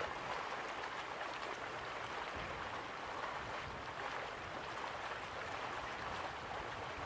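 Waterfalls rush and splash steadily in the distance.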